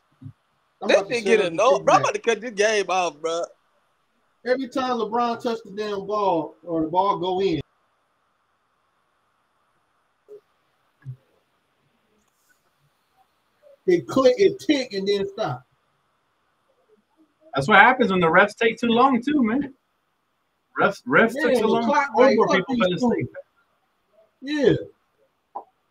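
A man talks with animation over an online call, in bursts with pauses.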